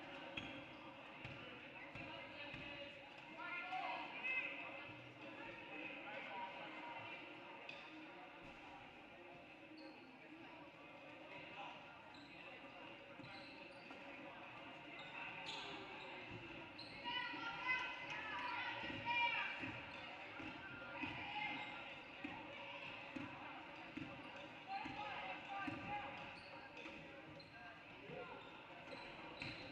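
Basketball dribbles thud on a wooden court in a large echoing gym.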